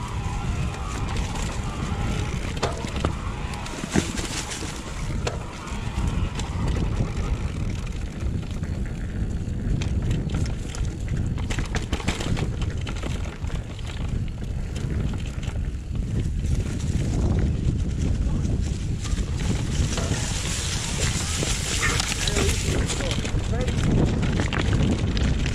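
A bicycle's frame and chain clatter over bumps.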